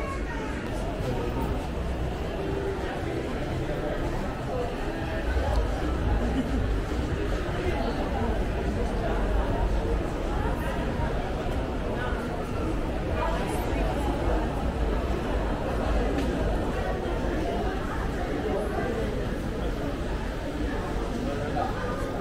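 Footsteps tap on a hard floor close by.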